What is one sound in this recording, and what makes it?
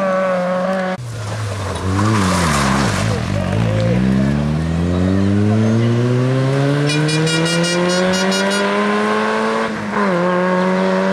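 A second rally car engine revs and roars past, then fades away.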